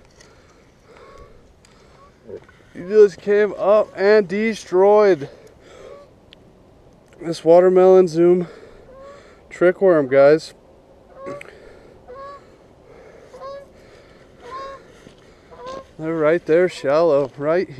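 A fishing reel clicks and whirs as its line winds in.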